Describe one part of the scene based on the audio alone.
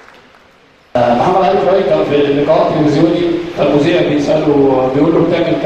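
A man speaks clearly into a microphone.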